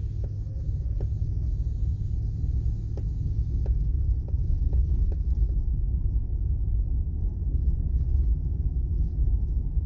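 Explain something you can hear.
Car tyres roll over rough pavement.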